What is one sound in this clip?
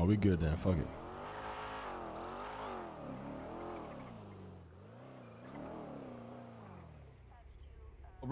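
A car engine revs and hums as it drives.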